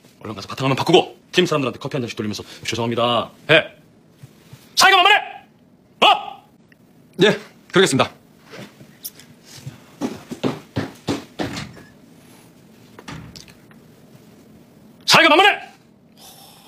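A man speaks sharply and with anger, close by.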